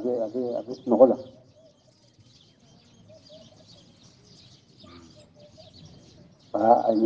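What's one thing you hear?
An elderly man speaks with feeling.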